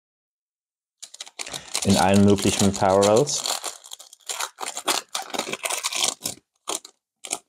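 A foil wrapper crinkles and tears open close by.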